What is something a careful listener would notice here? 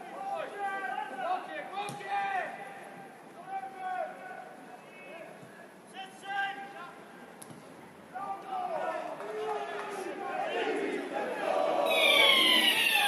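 Football players shout to each other outdoors, heard from a distance.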